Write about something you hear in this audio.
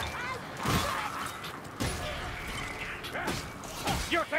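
Rat-like creatures squeal and shriek nearby.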